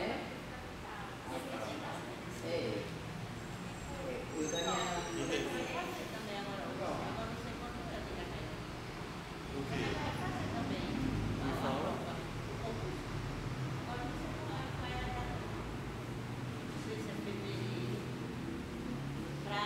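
A woman speaks calmly into a microphone, heard through a loudspeaker in an echoing room.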